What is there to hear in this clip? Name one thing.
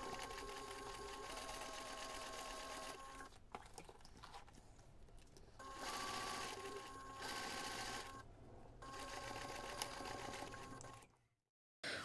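A sewing machine whirs and stitches in short bursts.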